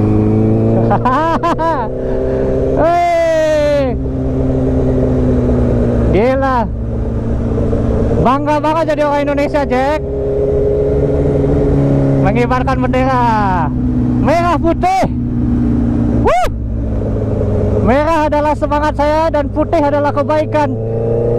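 A motorcycle engine revs up sharply again and again.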